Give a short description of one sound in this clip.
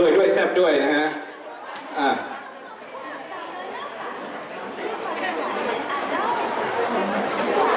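A crowd of young women chatters and squeals excitedly nearby.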